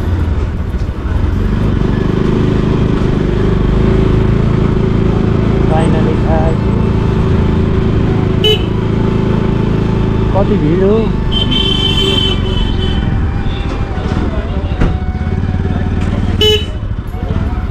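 A motorcycle engine hums steadily up close while riding slowly.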